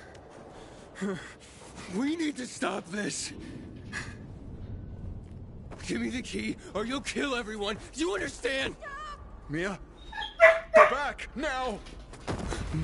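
A man speaks urgently and breathlessly, close by.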